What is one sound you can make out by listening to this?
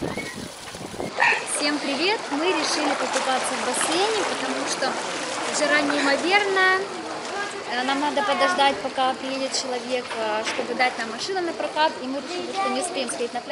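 Water splashes and laps in a swimming pool.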